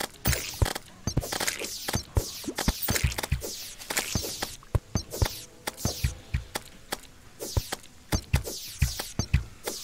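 Short thuds and sharp swishing hits sound again and again.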